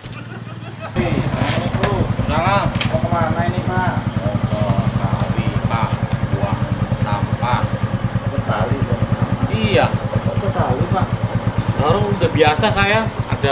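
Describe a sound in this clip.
A motorcycle engine idles with a steady putter close by.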